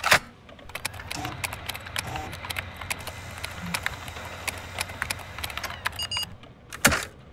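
Fingers tap quickly on a keyboard.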